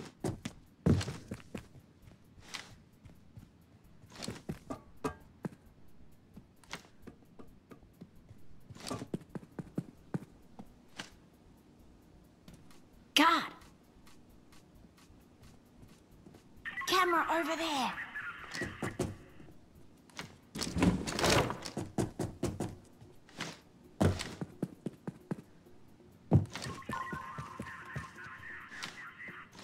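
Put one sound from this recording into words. Footsteps thud steadily on hard floors and metal stairs.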